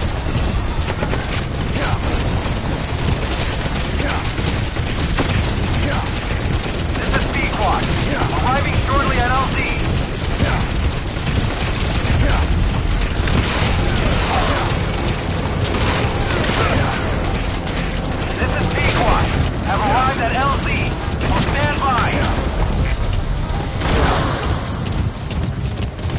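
Horse hooves pound steadily at a gallop.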